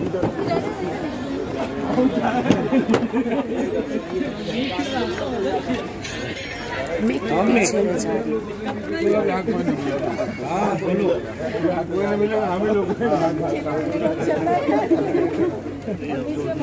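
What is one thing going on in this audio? A crowd of men talk and call out together close by.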